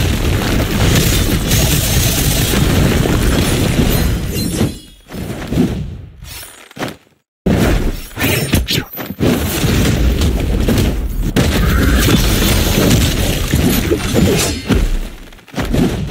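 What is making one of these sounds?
Sword slashes and magical whooshes crackle in quick bursts.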